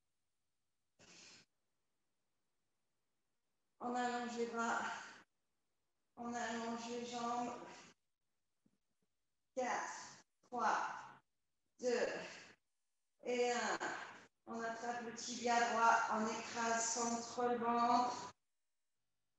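A woman gives calm exercise instructions over an online call.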